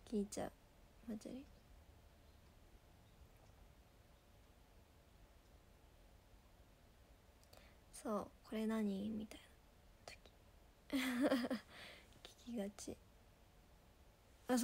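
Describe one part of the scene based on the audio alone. A young woman speaks softly and haltingly, close to a microphone.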